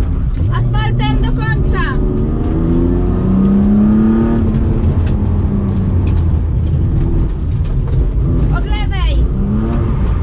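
Tyres squeal on pavement.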